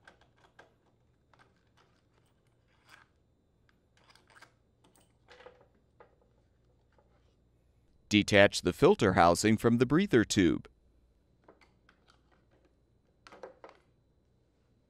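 Plastic parts of an air filter housing click and rattle as hands pull them off.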